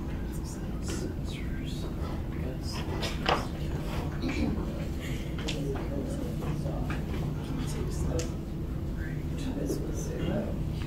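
A man speaks from across a room.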